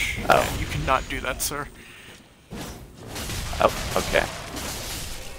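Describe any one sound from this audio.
Steel blades clash and swish in a fight.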